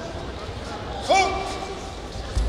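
A man shouts a short command loudly.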